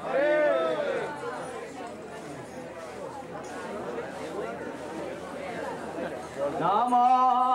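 A crowd of men talk over one another close by.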